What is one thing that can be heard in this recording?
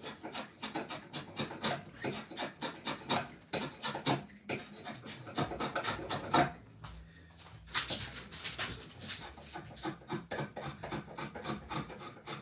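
A blade shaves wood in quick, rasping strokes.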